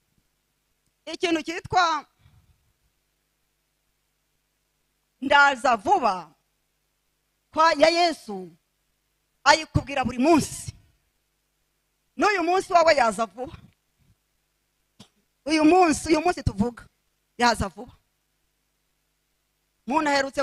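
An older woman speaks into a microphone in short, deliberate phrases with long pauses.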